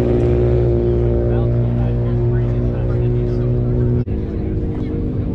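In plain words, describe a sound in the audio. A car engine drones while driving along a road.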